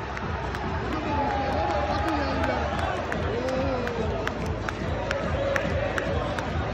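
A large crowd of men sings loudly together in a big echoing stadium.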